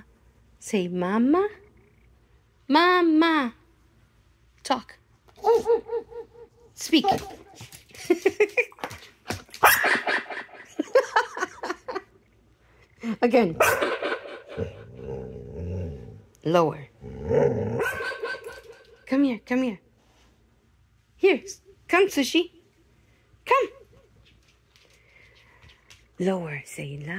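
A dog howls and yowls close to a microphone in short bursts.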